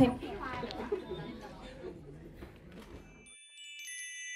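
A crowd of young men and women chatters and murmurs nearby.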